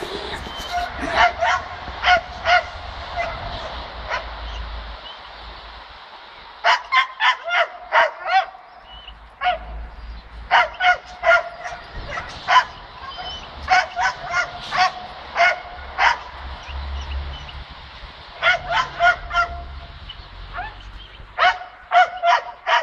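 A dog barks sharply in repeated bursts outdoors.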